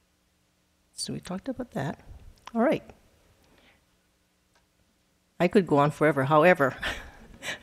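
An elderly woman speaks calmly into a microphone, heard through a loudspeaker.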